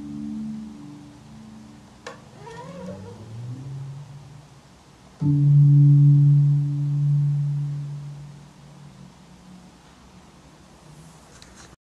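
An electric bass guitar plays low plucked notes that ring and fade.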